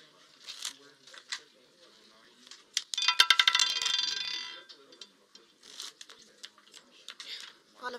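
A roulette ball rattles around a spinning wheel.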